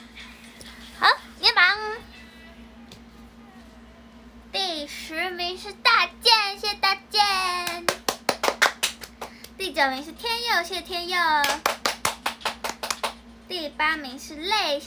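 A young woman sings close to a microphone.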